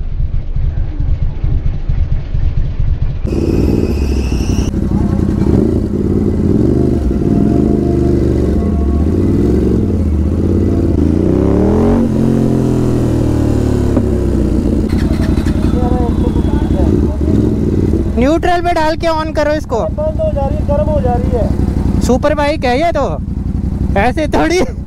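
A motorcycle engine rumbles up close.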